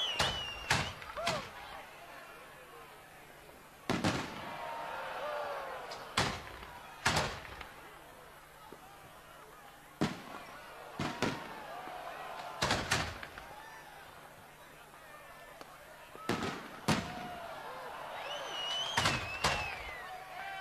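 Fireworks burst with loud booming bangs that echo.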